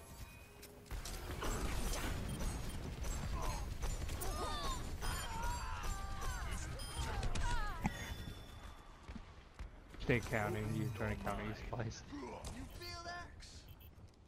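Energy weapons fire in rapid bursts with electronic whooshes.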